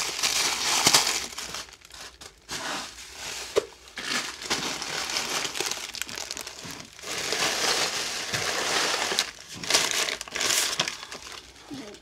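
Fabric rustles loudly right beside the microphone.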